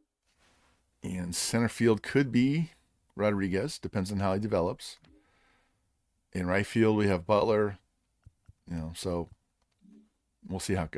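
A man talks calmly into a close microphone, in short bursts with pauses.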